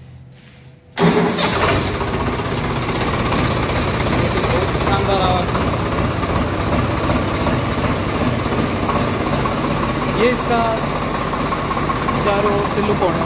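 A tractor engine runs with a steady, loud rumble.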